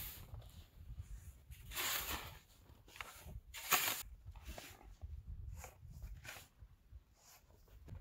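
A shovel scrapes and scoops snow.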